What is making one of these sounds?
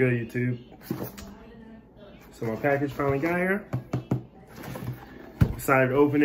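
A cardboard box taps and rustles in a man's hands.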